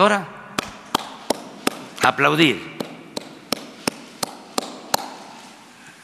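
An elderly man claps his hands.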